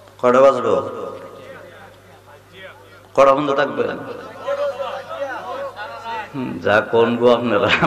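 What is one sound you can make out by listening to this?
A man preaches forcefully into a microphone over loudspeakers, his voice echoing.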